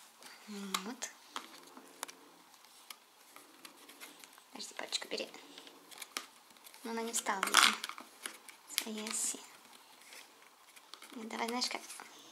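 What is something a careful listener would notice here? A young child speaks softly and briefly, close by.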